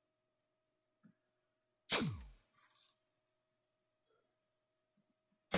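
Feet stomp on a dance mat's plastic panels.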